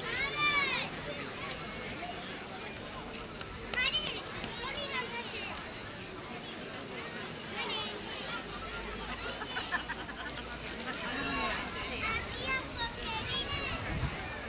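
Small flutes play a lively tune outdoors.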